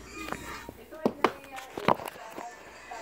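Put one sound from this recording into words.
A cardboard wheel is set down on a wooden floor with a few light knocks.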